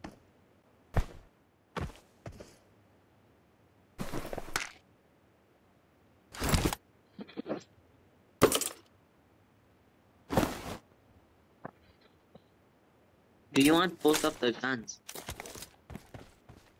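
Sharp gunshots crack one at a time.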